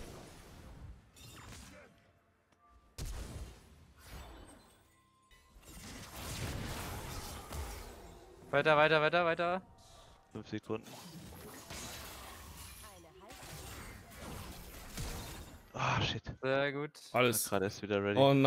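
Game effects whoosh and crackle during a fight.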